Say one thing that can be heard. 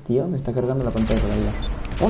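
A gun fires a short burst.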